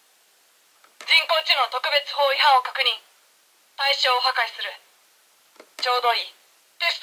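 A toy gadget plays a loud electronic voice through a small speaker.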